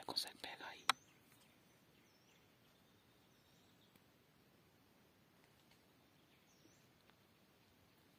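A small bird chirps softly nearby.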